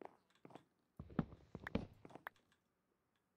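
A block cracks and crunches as it is broken.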